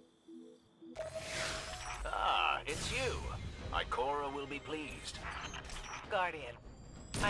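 A laser weapon fires with a loud, wavering buzz.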